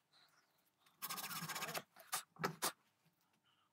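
A hand tool scrapes on a small metal part.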